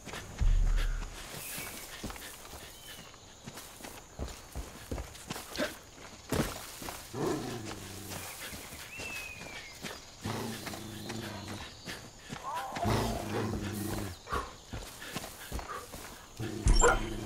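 Footsteps crunch steadily on dry, stony ground.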